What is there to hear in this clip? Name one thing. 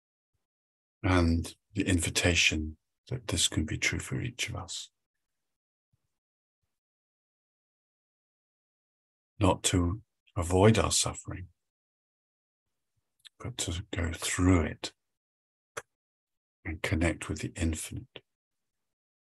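A middle-aged man speaks calmly over an online call, pausing between phrases.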